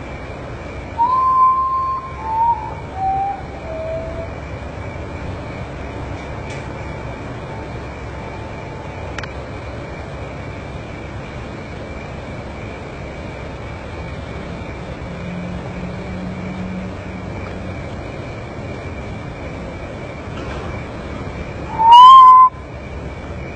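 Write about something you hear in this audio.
A bird calls nearby with a mournful series of falling whistled notes.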